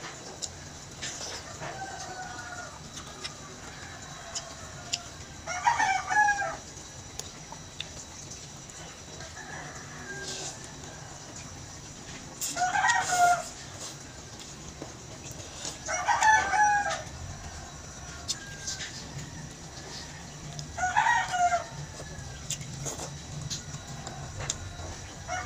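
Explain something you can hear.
A young woman chews food with wet, smacking sounds close to a microphone.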